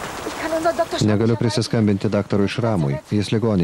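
An older woman speaks with emotion, close by.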